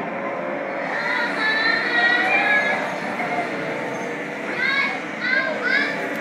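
Young children shout and squeal with excitement nearby.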